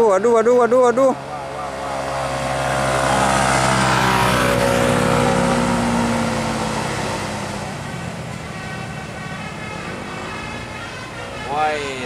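A motorcycle engine buzzes past close by.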